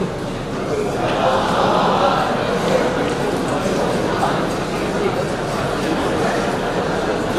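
A large audience murmurs and chatters.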